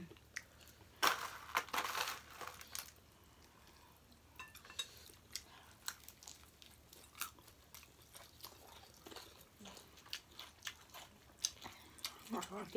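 Crunchy food is chewed with loud smacking close up.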